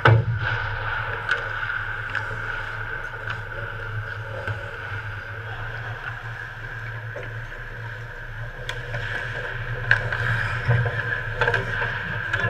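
Ice skates scrape and carve across the ice.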